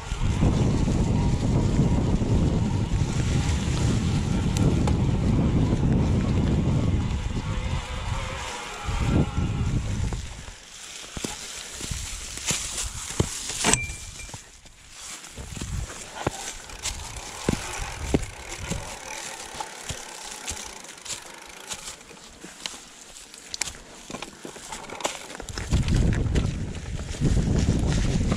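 Bicycle tyres crunch and rustle over dry leaves.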